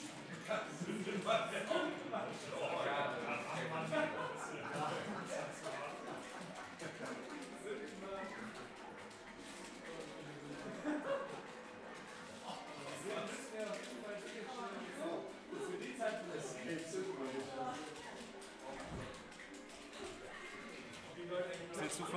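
Several young men chat and talk over each other in a room.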